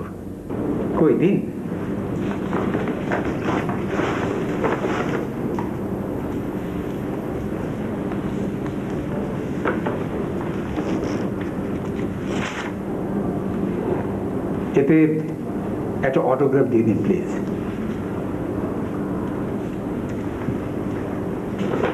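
An elderly man speaks calmly to others nearby.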